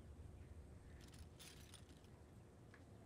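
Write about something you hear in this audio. Bedsheets rustle softly as a woman shifts in bed.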